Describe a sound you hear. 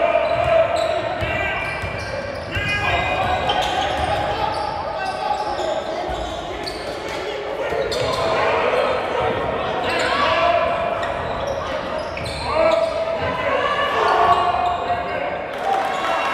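Spectators and players shout and call out in a large echoing gym.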